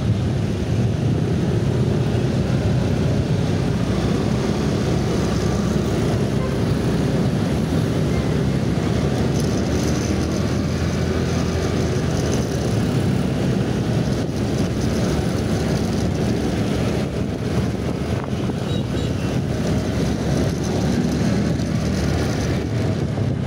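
Many motorcycles and cars rumble in dense traffic around.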